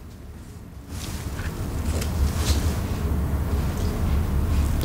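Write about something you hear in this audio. Paper wrapping rustles as a boy eats.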